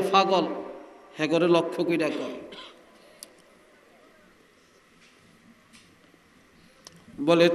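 An elderly man chants loudly into a microphone, heard through a loudspeaker with echo.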